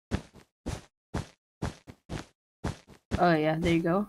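Blocks are set down with quick, evenly spaced taps.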